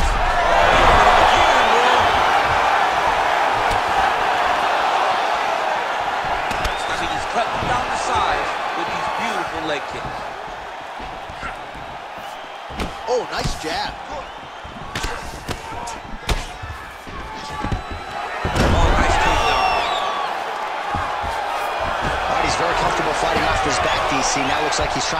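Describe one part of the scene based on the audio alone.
A large crowd cheers and roars in an echoing arena.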